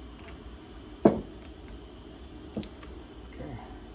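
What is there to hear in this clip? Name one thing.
Small metal parts click against each other.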